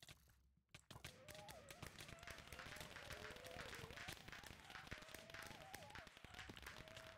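Magic bursts crackle and fizz.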